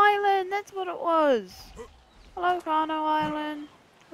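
Water laps gently at a shore.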